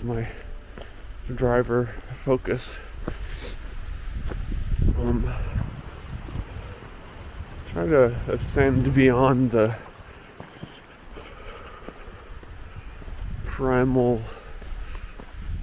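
Footsteps crunch steadily on a trail outdoors.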